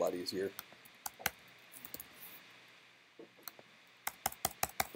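Computer keys click in short bursts of typing.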